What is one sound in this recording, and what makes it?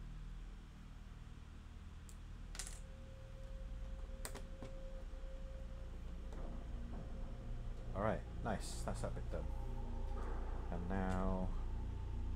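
Small plastic bricks click and clatter as they are handled.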